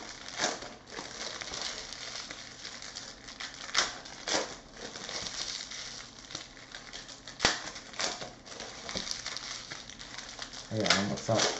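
Trading card packs rustle and crinkle as hands tear them open.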